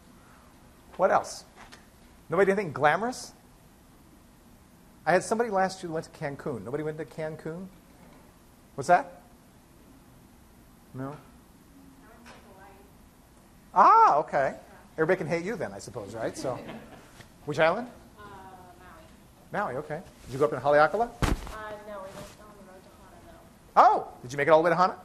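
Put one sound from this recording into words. An elderly man speaks calmly in bursts, heard in a room with a slight echo.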